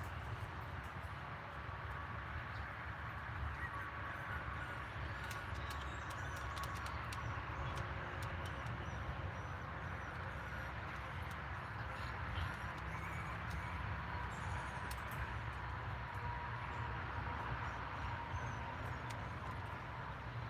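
Small puppies whimper and squeak softly.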